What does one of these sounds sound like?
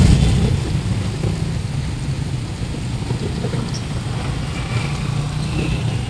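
A motorbike engine passes by.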